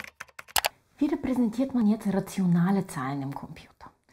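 A woman speaks calmly into a microphone close by.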